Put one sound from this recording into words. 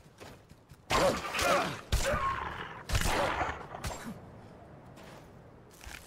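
A sword strikes with sharp, heavy blows.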